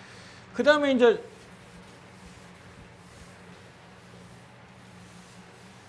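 An eraser rubs across a chalkboard.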